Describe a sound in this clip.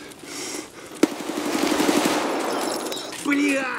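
A rifle fires loudly with a rumbling echo.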